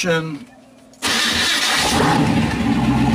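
A car engine starts with a sudden roar.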